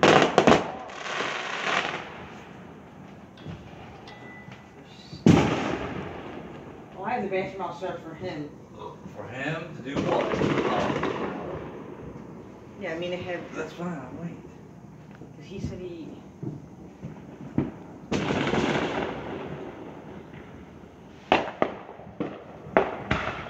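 Fireworks boom and crackle nearby outdoors.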